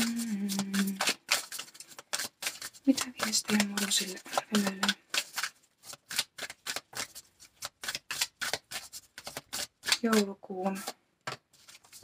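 Playing cards riffle and flutter as they are shuffled by hand.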